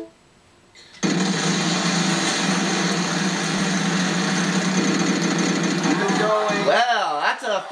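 A prize wheel spins with a rapid clicking rattle.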